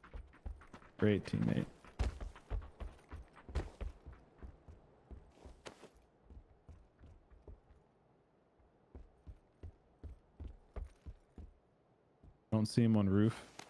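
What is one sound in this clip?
A man talks into a close microphone with animation.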